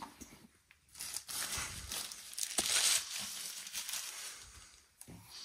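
Soft paper rustles and crinkles as it is handled.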